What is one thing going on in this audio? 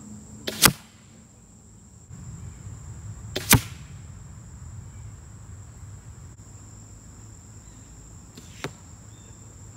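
Arrows strike a target with sharp thuds.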